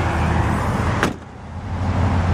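A car tailgate slams shut.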